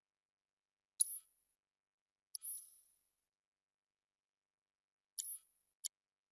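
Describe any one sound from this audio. Short, bright menu chimes blip a few times.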